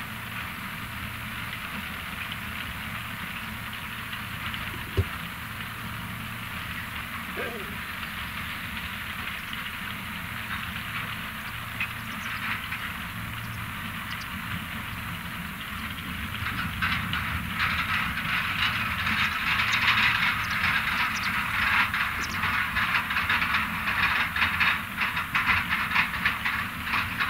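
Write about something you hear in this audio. A large machine engine rumbles steadily.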